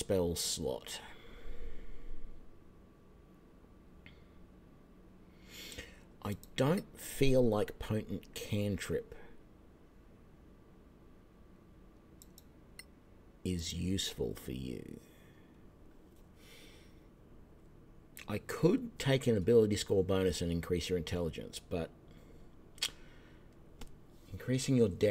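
A middle-aged man talks calmly into a close microphone, in bursts with pauses.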